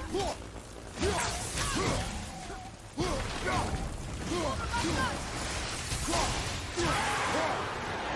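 Heavy blows thud and crash against a creature.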